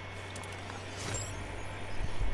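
A glider snaps open with a whoosh.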